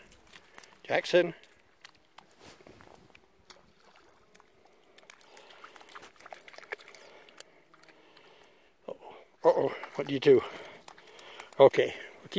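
A dog wades through shallow water.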